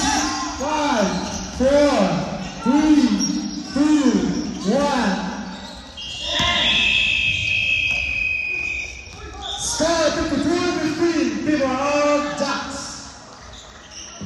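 Sneakers squeak sharply on a wooden court in an echoing gym.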